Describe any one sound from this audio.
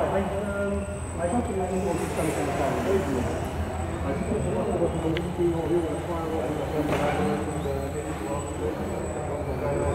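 Men talk in a large echoing hall.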